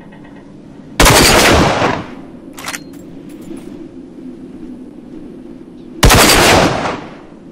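A rifle fires a loud shot that rumbles and echoes away.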